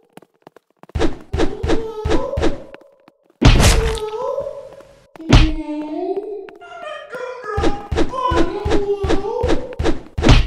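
Rapid footsteps thud on a hard floor.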